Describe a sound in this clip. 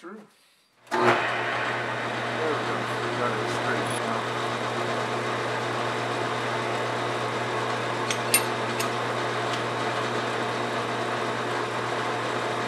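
A lathe motor starts with a jolt and hums steadily.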